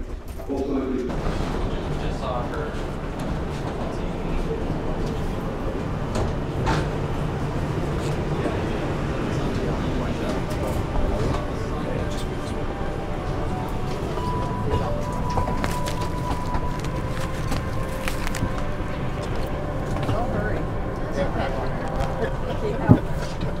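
A steady low hum of aircraft cabin air fills the space.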